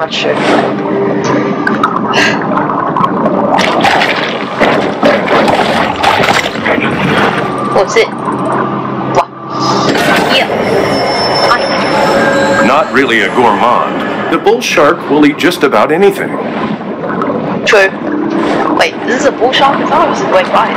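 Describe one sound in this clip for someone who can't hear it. Water rushes and bubbles as a shark swims underwater.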